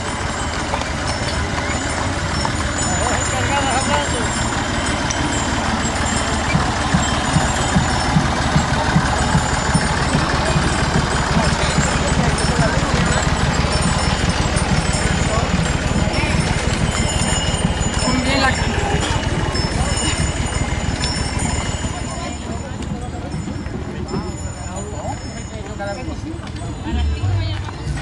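A crowd of people chatter outdoors as they walk.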